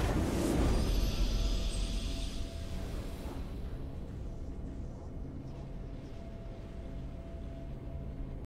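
A triumphant victory fanfare plays and slowly fades.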